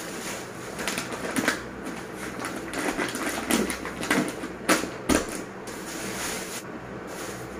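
Plastic packets rustle and crinkle as they are moved about.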